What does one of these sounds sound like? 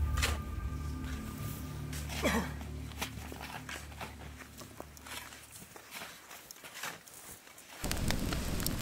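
Shovels scrape and crunch into deep snow.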